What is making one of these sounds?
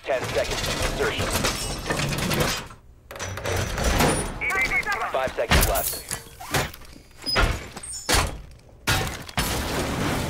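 A heavy metal panel slams and clanks into place.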